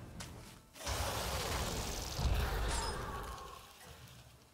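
A magical spell effect bursts with a shimmering whoosh.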